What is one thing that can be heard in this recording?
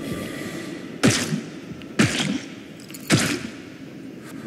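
A metal pipe strikes a body with heavy thuds.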